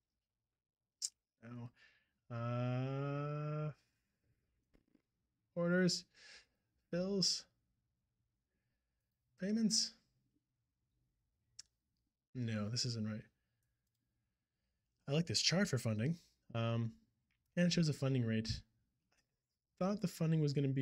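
A man talks calmly and closely into a microphone, in short bursts with pauses.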